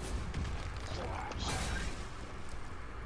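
A magical whoosh ends in a crashing impact.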